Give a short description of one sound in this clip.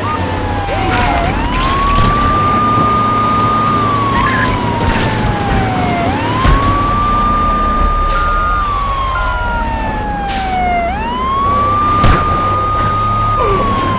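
A fire truck siren wails, rising and falling.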